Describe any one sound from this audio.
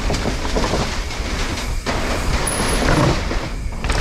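Bicycle tyres rumble over wooden planks.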